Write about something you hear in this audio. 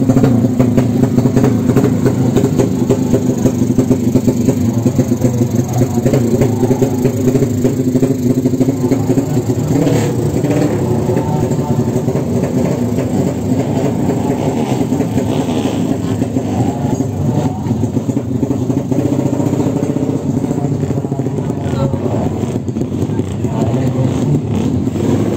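A drag-racing motorcycle engine runs.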